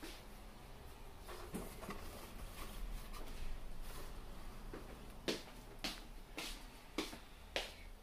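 A cardboard box rustles and scrapes.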